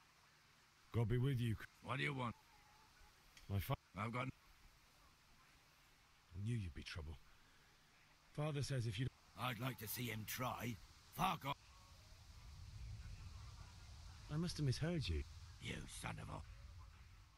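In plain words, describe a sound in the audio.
A young man speaks calmly and firmly.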